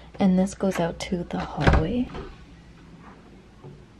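A door handle clicks as a door opens.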